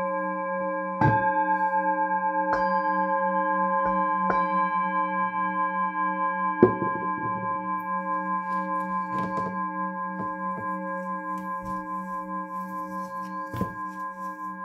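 A singing bowl is struck softly, several times.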